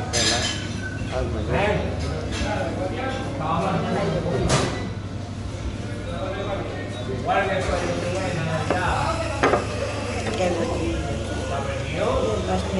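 An elderly woman talks calmly close by.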